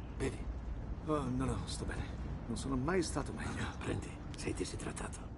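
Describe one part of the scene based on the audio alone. Two men talk calmly in a car.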